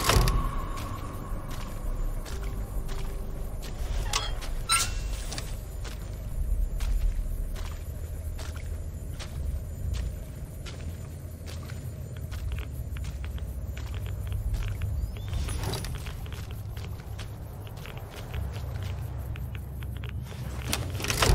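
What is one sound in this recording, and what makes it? Water splashes and sloshes as someone wades through it.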